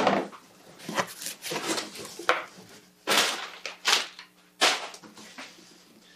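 Packing paper crinkles and rustles.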